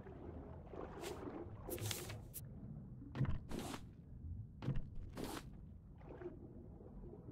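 Short whooshing pickup sounds come in quick bursts.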